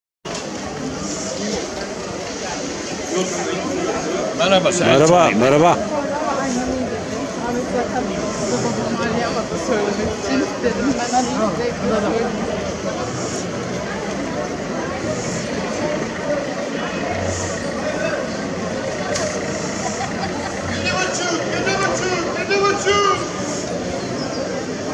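A busy crowd chatters outdoors on a street.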